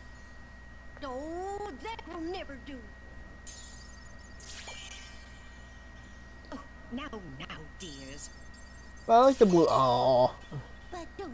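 An elderly woman speaks with concern.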